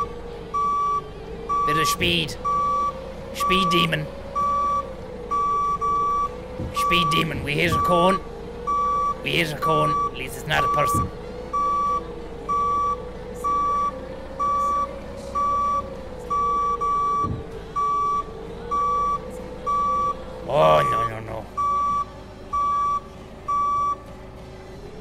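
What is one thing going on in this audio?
A forklift's reverse alarm beeps at an even pace, then stops.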